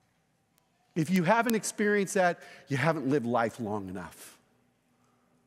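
A middle-aged man speaks with animation into a microphone.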